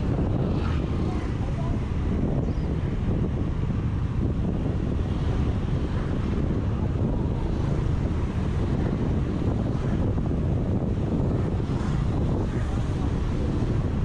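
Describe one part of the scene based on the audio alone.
Other motorbikes pass by on the street.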